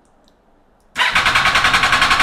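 A motorcycle engine starts up and idles loudly with a rapid, throbbing beat.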